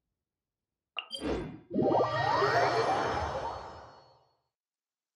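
A soft chime rings out and fades.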